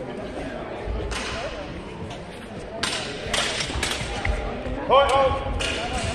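Swords clash with sharp metallic clicks.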